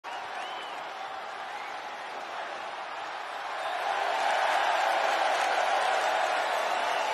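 A large crowd cheers and roars, growing louder.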